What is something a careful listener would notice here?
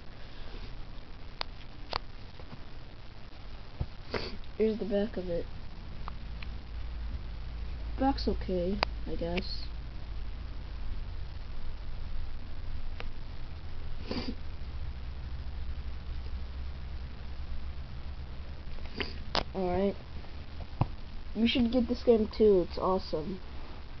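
A plastic game case clicks and taps as it is handled.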